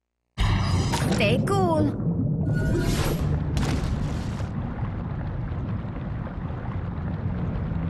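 Deep water rumbles low and steadily.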